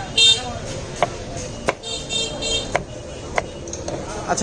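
A kitchen knife taps on a wooden chopping board.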